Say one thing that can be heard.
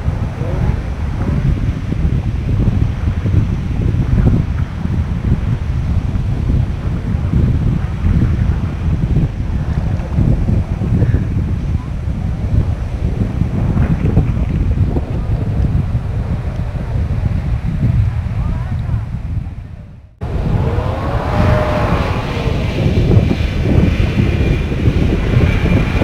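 Wind buffets the microphone outdoors with a low, steady rumble.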